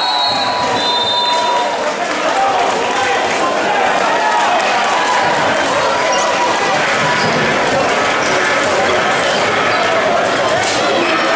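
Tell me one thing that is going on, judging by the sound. A large crowd cheers and shouts in an echoing arena.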